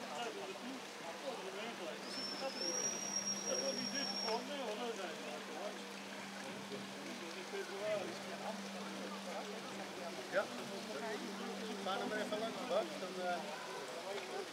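A small model boat motor hums steadily on the water.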